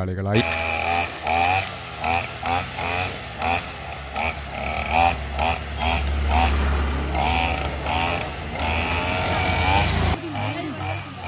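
A string trimmer engine drones steadily close by.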